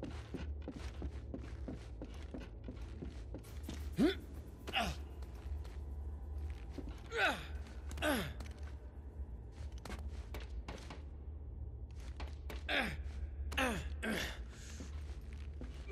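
Footsteps thud on wooden beams.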